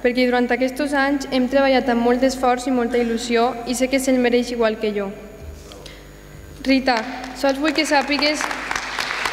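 A young woman reads out calmly through a microphone in a large hall.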